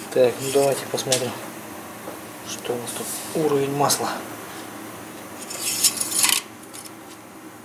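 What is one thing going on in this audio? A metal dipstick scrapes as it slides out of an engine.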